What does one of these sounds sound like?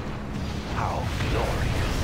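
A plane roars overhead.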